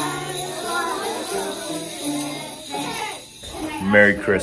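Children sing together in a room.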